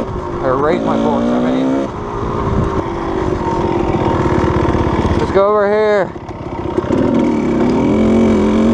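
A dirt bike engine roars and revs up and down close by.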